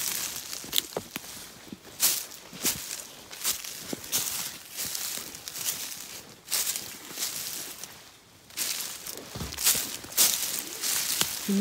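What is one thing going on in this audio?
Footsteps crunch and rustle through dry leaves and twigs.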